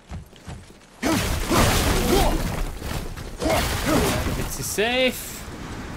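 Loud thuds and crashes of a video game fight play.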